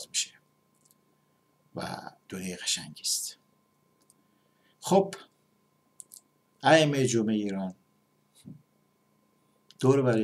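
A middle-aged man speaks close to a microphone in short, emphatic bursts.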